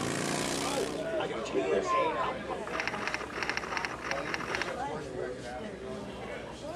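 Women talk and laugh loudly in a noisy crowd.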